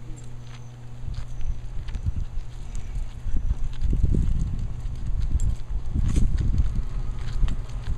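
Wheelchair wheels roll over a paved path.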